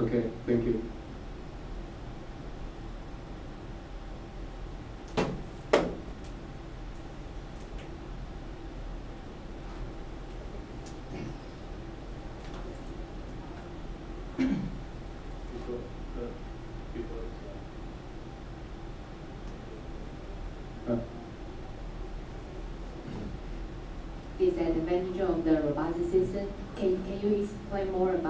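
An older man speaks calmly in a quiet room.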